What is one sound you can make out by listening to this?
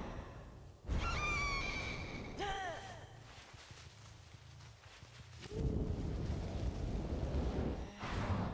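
Dry corn stalks rustle as someone pushes through them.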